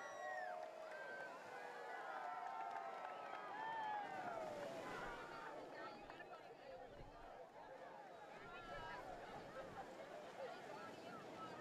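Waves crash and wash onto a shore.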